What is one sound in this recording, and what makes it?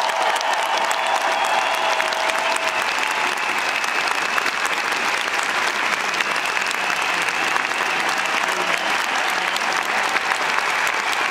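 An orchestra plays loudly in a large echoing arena.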